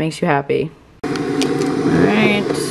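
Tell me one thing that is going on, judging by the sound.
A kettle switch clicks on.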